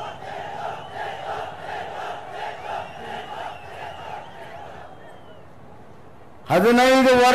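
A man speaks loudly into a microphone.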